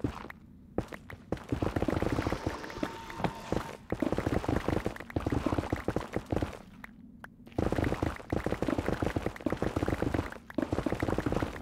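Blocks are rapidly dug and broken in quick repeated crunches.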